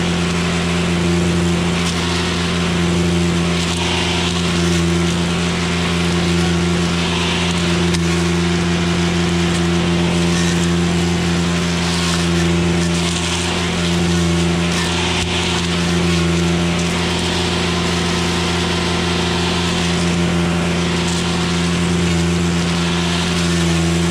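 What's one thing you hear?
A brush cutter's spinning blade swishes through weeds and brush.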